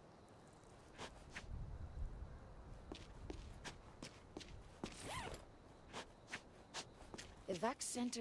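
Footsteps thud on pavement at a steady pace.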